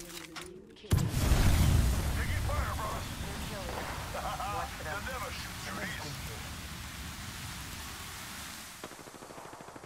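Rifle gunfire rattles.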